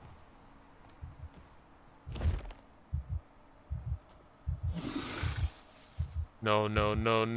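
Footsteps thud slowly on soft ground.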